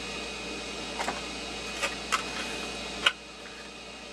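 A screwdriver is set down on a hard surface with a clack.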